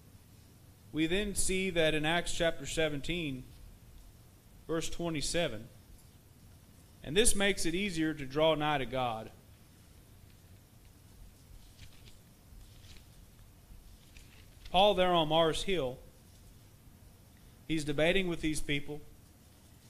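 A man reads aloud calmly into a microphone, with pauses, in an echoing room.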